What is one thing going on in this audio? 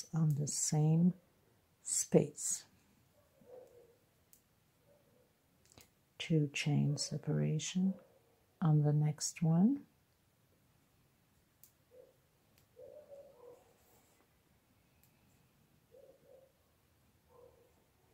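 A crochet hook softly rustles and clicks through yarn.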